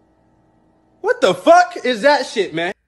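A young man speaks loudly and excitedly close to a microphone.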